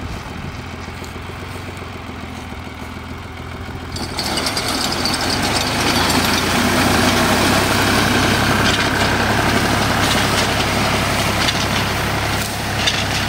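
A small engine runs steadily and loudly nearby.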